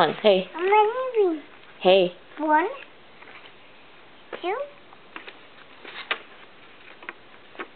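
Paper cards tap and slide against each other.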